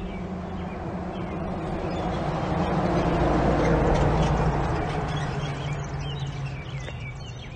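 A pickup truck drives past on the street.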